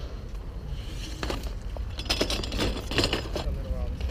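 A bicycle clatters onto concrete.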